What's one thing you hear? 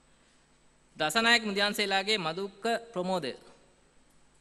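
A man reads out over a loudspeaker in a large hall.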